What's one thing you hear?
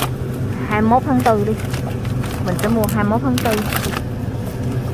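Plastic wrapping crinkles as a hand handles packages.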